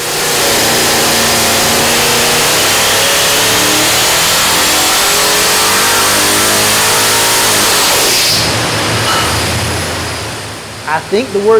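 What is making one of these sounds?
A large engine roars loudly at high revs, then winds down.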